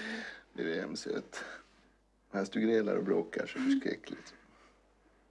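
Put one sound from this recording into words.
A woman laughs softly close by.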